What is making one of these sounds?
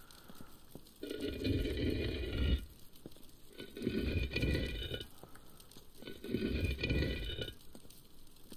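A heavy stone wheel grinds as it turns, in several bursts.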